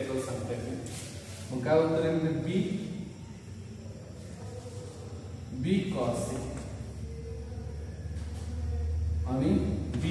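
A man speaks calmly, explaining at a steady pace.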